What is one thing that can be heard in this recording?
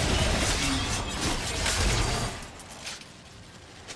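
Spell effects crackle and burst in a video game fight.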